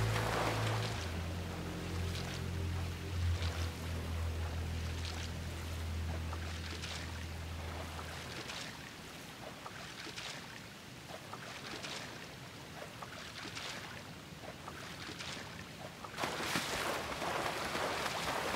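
A swimmer splashes and paddles through water in an echoing chamber.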